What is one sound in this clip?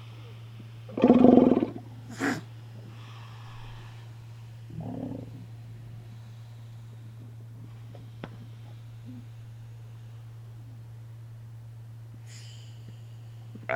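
Sea lions bark and grunt close by.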